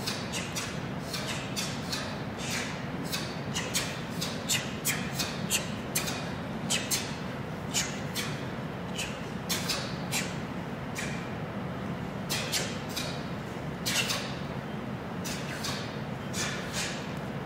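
Bare feet thud and slide on a hard floor.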